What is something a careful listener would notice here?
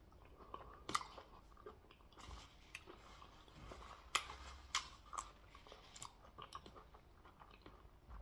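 Food squelches and crackles as fingers tear it apart.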